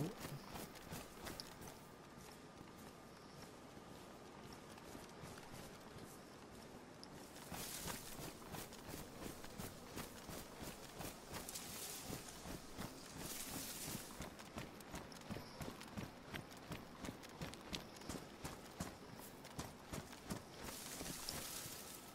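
Footsteps rustle steadily through tall grass.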